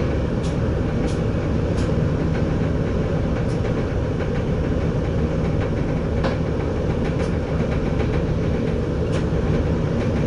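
Train wheels click over rail joints now and then.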